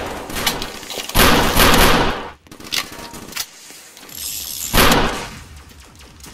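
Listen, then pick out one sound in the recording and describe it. Revolver shots crack loudly.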